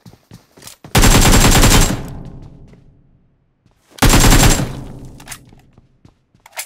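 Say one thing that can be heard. A rifle fires a loud shot that echoes.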